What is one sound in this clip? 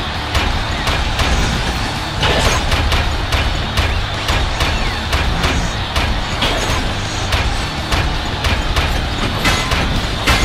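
A crowd cheers and roars in a large echoing hall.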